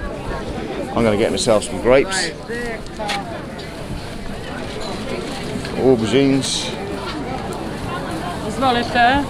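Men and women chatter nearby amid a busy outdoor crowd.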